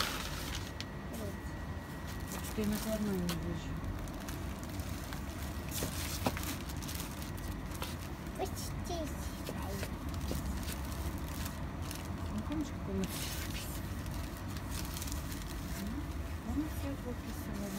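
Plastic wrapping crinkles and rustles as yarn is handled.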